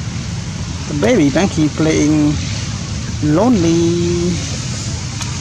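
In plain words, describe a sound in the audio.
A baby monkey cries out with short, wavering squeals.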